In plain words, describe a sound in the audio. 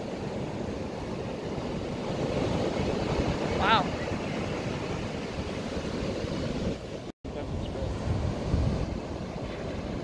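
Wind blows across the open beach.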